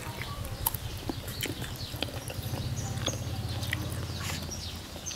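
A man picks food from a plate with his fingers.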